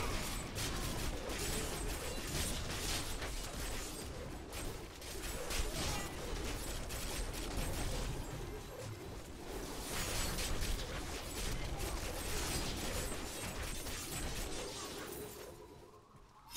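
Game spell blasts crackle and boom in quick bursts.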